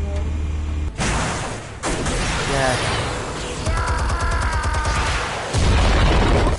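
A turret gun fires rapid bursts.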